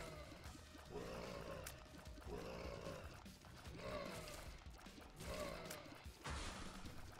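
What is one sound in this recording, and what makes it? Small popping shots fire rapidly from a game character.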